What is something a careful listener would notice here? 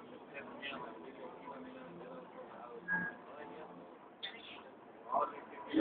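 Men and women chatter nearby in a crowded bus.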